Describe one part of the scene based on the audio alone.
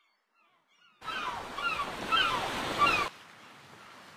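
Seagulls cry overhead.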